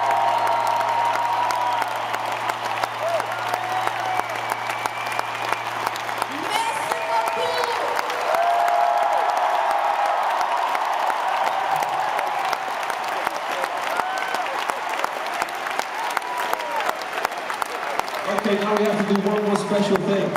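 A large crowd cheers and screams loudly, heard from far off in a big open space.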